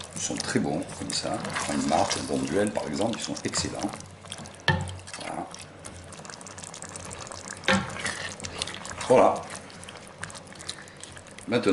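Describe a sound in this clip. A wooden spoon stirs thick stew in a metal pot.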